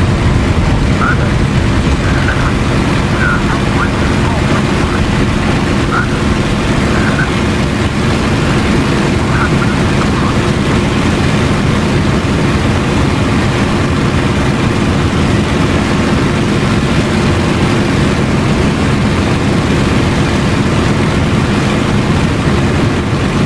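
A propeller plane's engine drones steadily and loudly from inside the cockpit.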